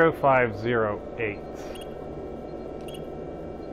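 A keypad beeps softly as buttons are pressed.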